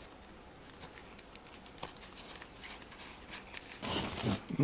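Trading cards shuffle and flick against each other in gloved hands.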